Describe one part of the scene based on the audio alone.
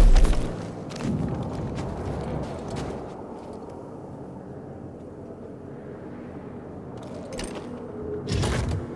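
A heavy metal crate scrapes as it is dragged across snow.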